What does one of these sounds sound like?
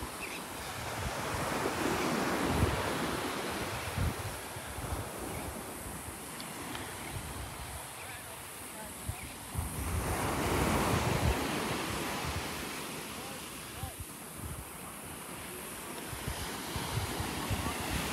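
Gentle waves wash onto the shore.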